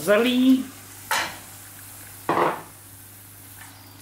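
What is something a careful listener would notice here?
Food is tipped into a hot pan.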